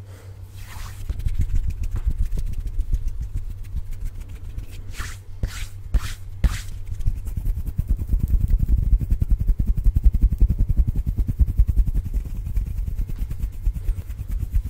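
Hands rub and brush against a microphone close up.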